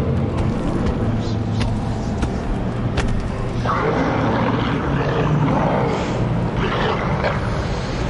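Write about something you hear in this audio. Loud music plays through big speakers.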